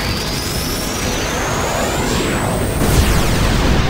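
A magical energy beam roars with a rising whine.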